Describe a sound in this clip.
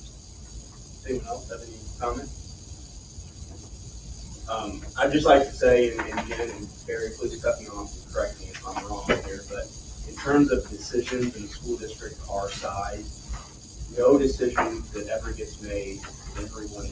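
An adult speaks close by in a room, in a calm, talking voice.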